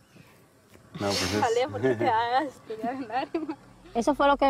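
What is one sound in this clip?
A young woman laughs and talks close by.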